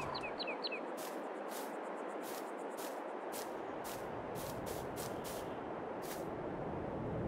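Footsteps tread on grass.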